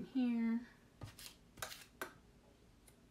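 Plastic stencil pieces tap and rustle as they are laid down.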